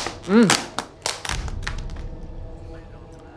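A plastic food container rustles and clicks.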